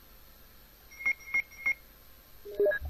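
A game menu beeps three times in quick succession.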